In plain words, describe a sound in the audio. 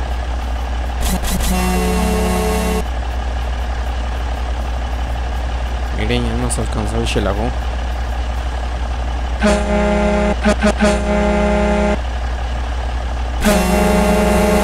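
A heavy bus engine rumbles steadily.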